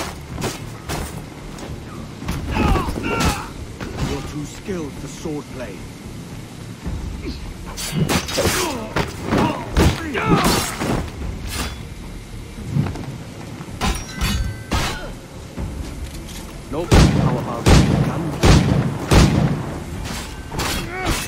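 Swords clash and strike repeatedly in a fight.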